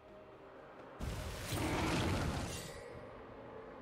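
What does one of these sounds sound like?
A burst of game sound effects rushes and whooshes.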